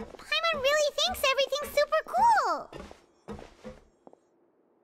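A young girl speaks brightly and with excitement.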